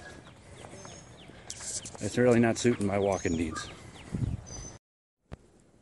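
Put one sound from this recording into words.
A man talks with animation close to a phone microphone outdoors.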